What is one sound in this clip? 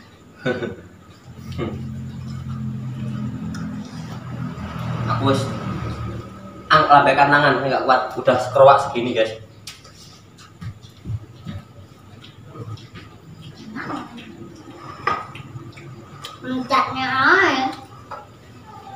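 Spoons clink against plates.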